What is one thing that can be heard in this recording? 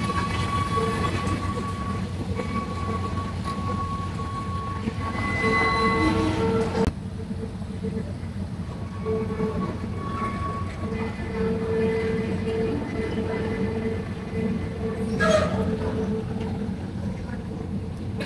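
A train rolls slowly past with a low, steady rumble.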